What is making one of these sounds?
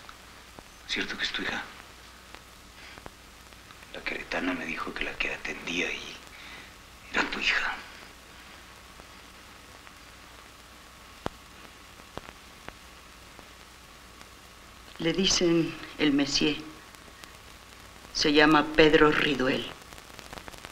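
A man speaks quietly up close.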